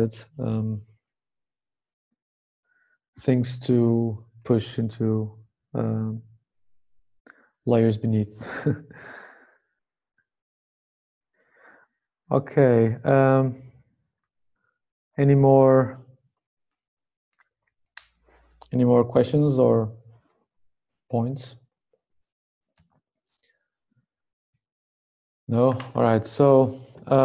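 A man speaks calmly in short bursts with pauses, heard through an online call.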